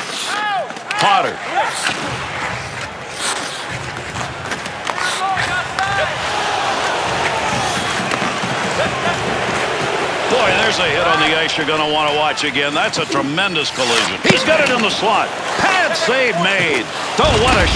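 Ice skates scrape and carve on ice.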